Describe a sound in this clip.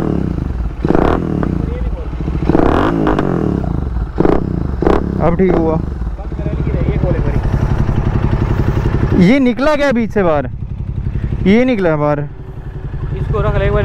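A motorcycle engine idles with a steady low rumble close by.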